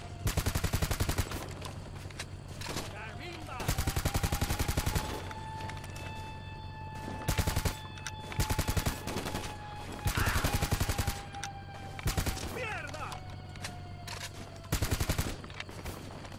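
Rapid rifle gunfire rings out in short bursts.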